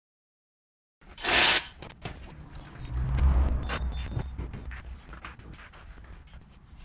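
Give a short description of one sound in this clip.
A heavy tyre rolls and thumps across a concrete floor.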